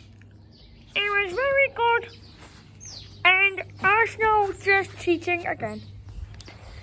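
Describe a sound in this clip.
A small dog whines and yelps close by in short, high cries.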